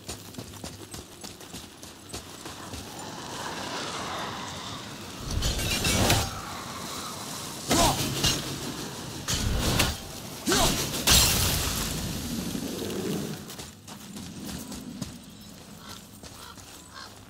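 Footsteps crunch quickly on gravel and snow.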